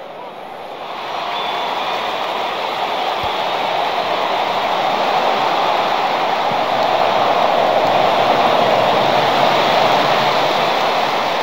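A large stadium crowd roars steadily, swelling louder.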